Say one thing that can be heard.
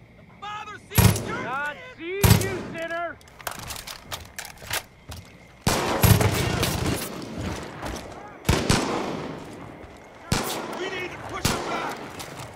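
Gunshots bang loudly several times.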